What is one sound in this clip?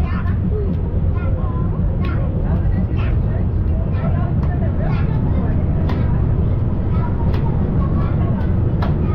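A train rumbles steadily on its track.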